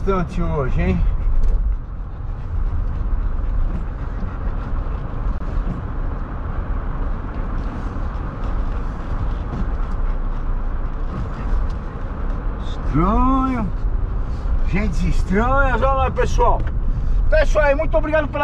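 A car engine and road noise rumble steadily inside a moving car.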